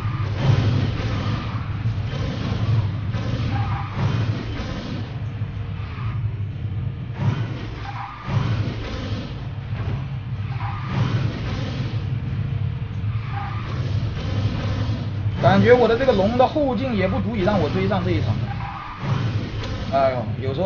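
A racing car engine roars and whooshes steadily.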